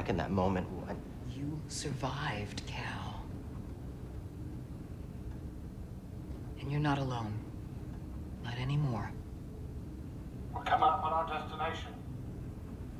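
A woman speaks calmly and quietly up close.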